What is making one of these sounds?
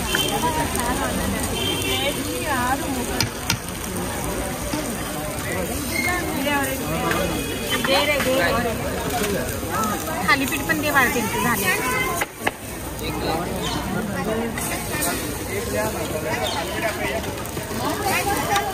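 Batter sizzles on a hot griddle.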